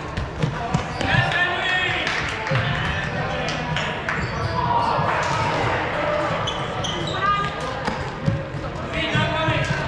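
Several young people shout and call out during a game.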